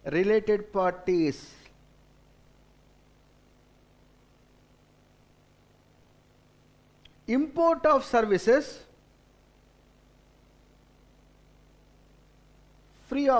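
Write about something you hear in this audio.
A middle-aged man lectures calmly into a microphone, with pauses.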